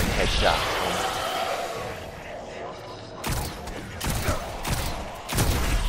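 A gun fires in quick shots.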